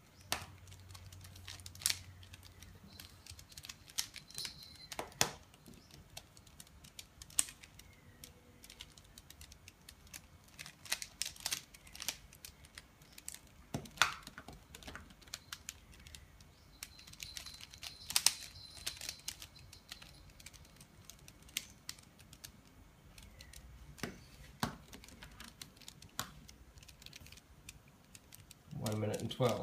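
A plastic puzzle cube clicks and clacks as its layers are turned.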